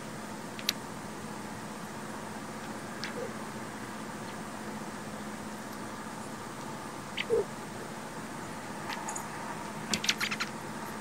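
A small bird gives short, sharp chirps now and then.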